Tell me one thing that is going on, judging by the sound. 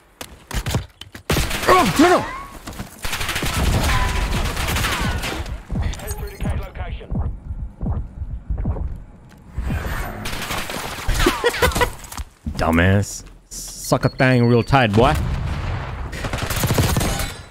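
A rifle fires bursts of rapid shots close by.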